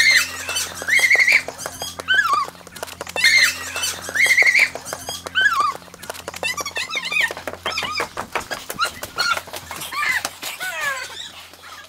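A woman shrieks excitedly nearby.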